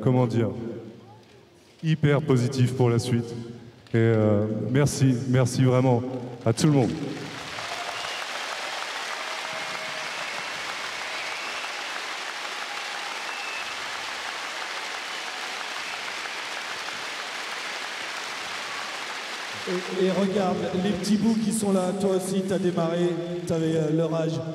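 A man speaks into a microphone, amplified through loudspeakers in a large echoing hall.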